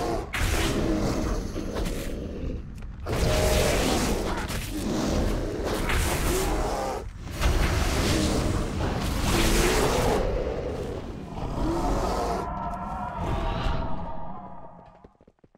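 Flames roar and burst in loud blasts.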